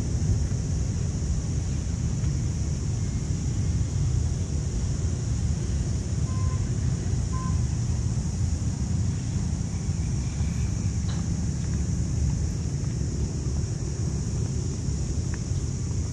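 Wind blows and rumbles outdoors.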